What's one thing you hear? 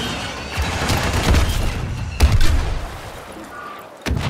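Explosions boom loudly.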